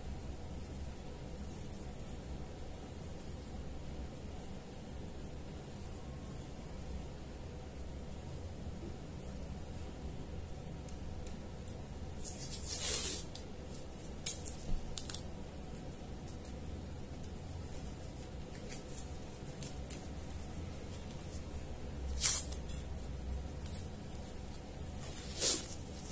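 Hands rustle softly against fur and a bandage.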